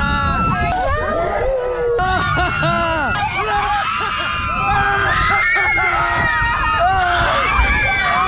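A young man shouts and laughs with excitement.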